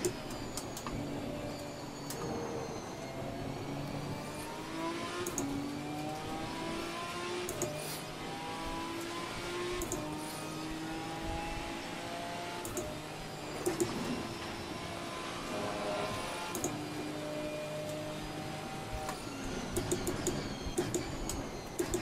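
A racing car engine roars, climbing in pitch through each gear and dropping at every shift.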